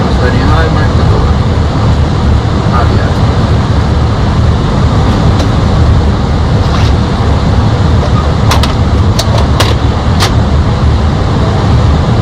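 A loud, steady roar of an airliner in flight.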